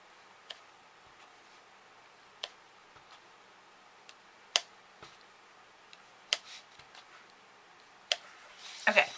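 An ink pad taps lightly on paper.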